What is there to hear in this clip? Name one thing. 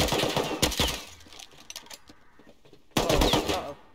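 Metal clicks and rattles as a rifle is reloaded.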